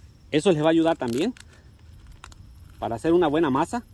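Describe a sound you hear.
Dry pasta snaps as hands break it.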